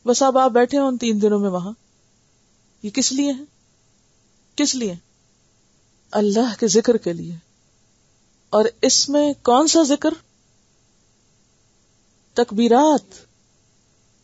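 A woman speaks calmly into a close microphone, in short phrases with pauses.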